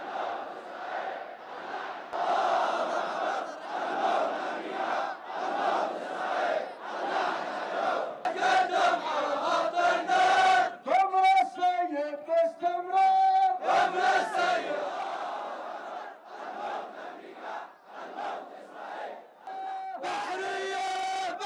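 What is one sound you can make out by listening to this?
A large crowd of men chants loudly in rhythm outdoors.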